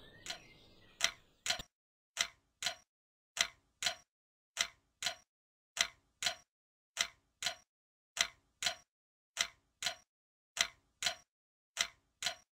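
A wall clock ticks loudly and steadily.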